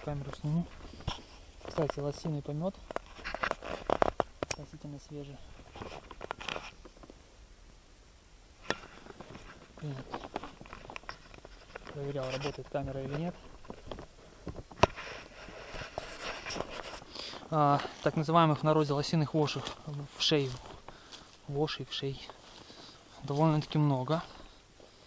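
Footsteps rustle through grass and dry leaves.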